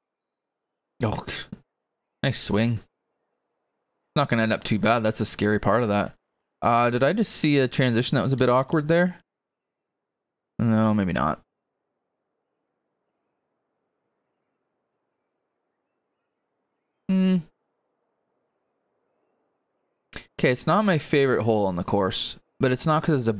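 A middle-aged man talks casually into a close microphone, in bursts with pauses.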